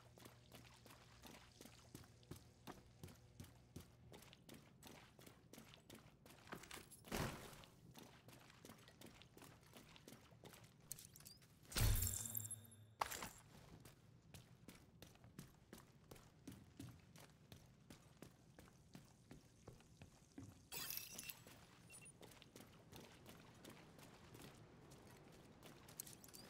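Footsteps splash steadily through shallow water.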